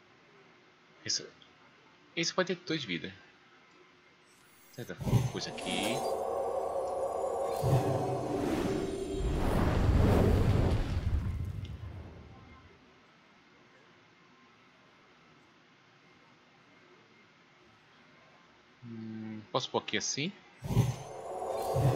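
A man speaks briefly and calmly close to a microphone.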